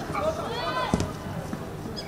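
A football is kicked hard with a thud.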